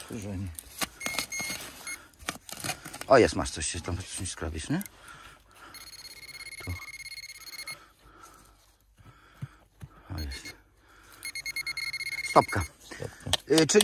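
A metal detector beeps with a steady high tone.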